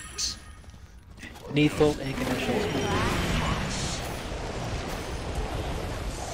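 Game spells whoosh and crackle in combat.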